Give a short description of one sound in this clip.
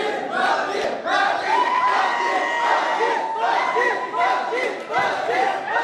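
A man talks loudly into a microphone, heard through loudspeakers in a large echoing hall.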